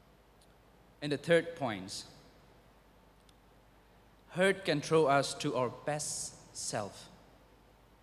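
A young man speaks calmly through a microphone, with long pauses.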